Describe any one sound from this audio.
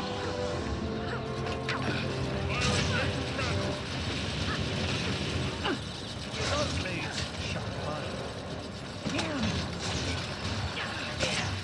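Magical blasts and swooshing spell effects burst repeatedly in a battle.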